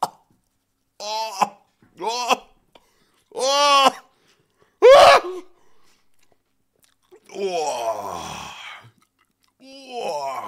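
A young man sings and wails loudly into a close microphone with excitement.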